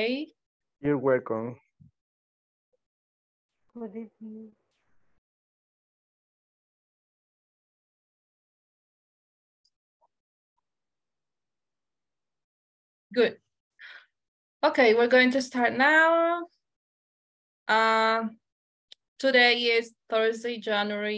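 A woman speaks calmly through an online call, in short bursts with pauses.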